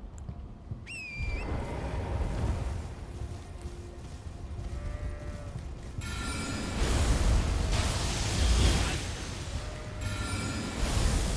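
Hooves thud as a horse gallops through grass.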